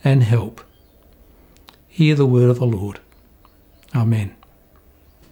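A middle-aged man speaks calmly and close by, in short phrases.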